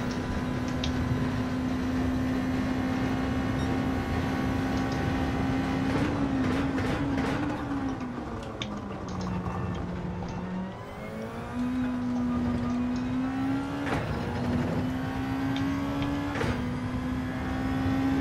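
A racing car engine roars at high revs, drops in pitch while braking, then climbs again through gear changes.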